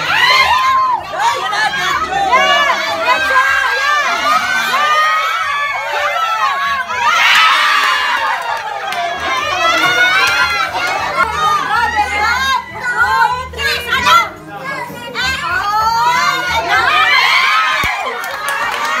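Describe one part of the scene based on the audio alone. A crowd of children and adults shouts and cheers excitedly close by.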